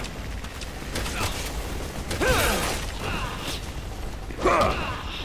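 Blows land on a body with heavy thuds.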